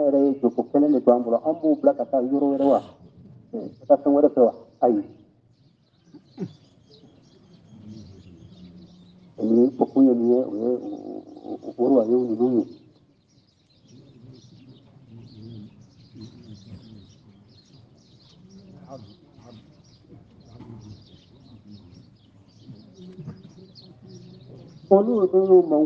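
An elderly man chants in a strong voice, heard close up.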